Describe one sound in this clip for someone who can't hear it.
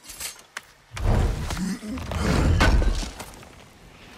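A heavy stone lid grinds and thuds open.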